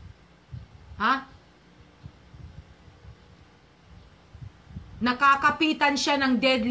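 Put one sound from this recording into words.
A middle-aged woman speaks with animation close to the microphone.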